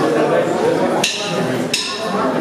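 Cymbals crash.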